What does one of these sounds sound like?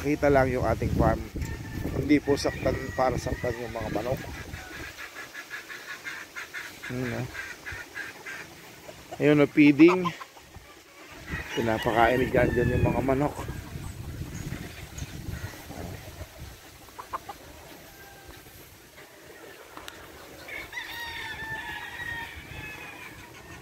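Roosters crow loudly, one after another, nearby and in the distance.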